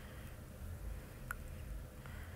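A laptop trackpad clicks softly under a finger.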